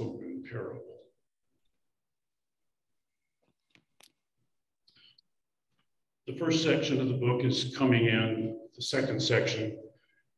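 An elderly man speaks calmly into a microphone, heard through an online call.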